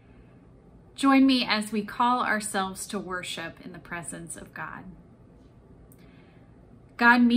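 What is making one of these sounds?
A young woman speaks warmly and clearly into a close microphone.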